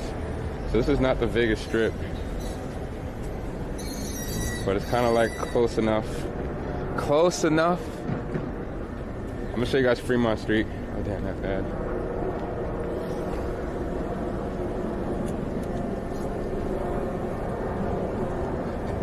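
Traffic hums steadily outdoors on a city street.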